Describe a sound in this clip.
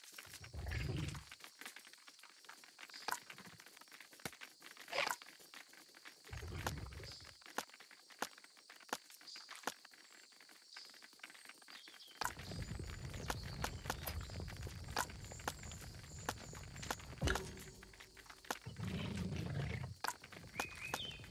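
Short game menu clicks sound again and again.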